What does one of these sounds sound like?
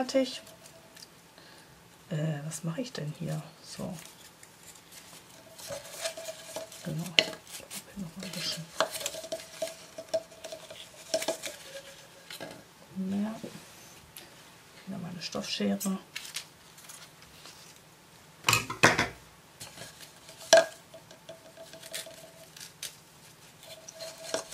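A satin ribbon rustles as it is pulled and wrapped.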